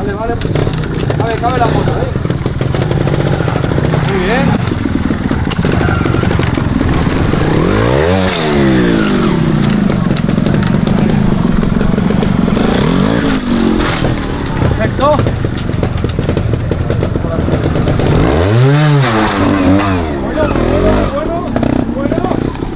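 Motorcycle tyres knock and scrape against rock.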